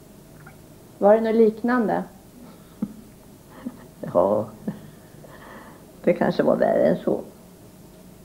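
An elderly woman speaks calmly and quietly, close by.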